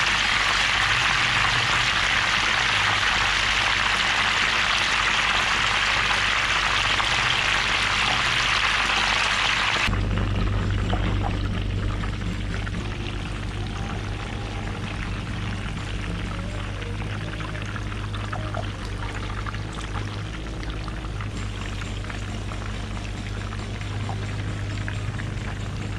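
Hot oil sizzles and crackles loudly, then settles to a quieter crackle.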